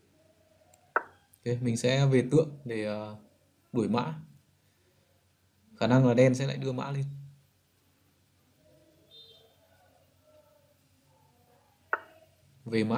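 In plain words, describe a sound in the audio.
A chess piece clicks into place.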